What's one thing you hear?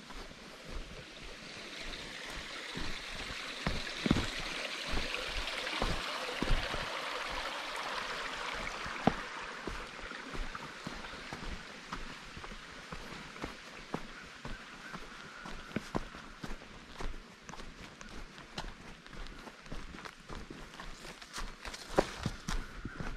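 Footsteps crunch on a dirt trail at a walking pace.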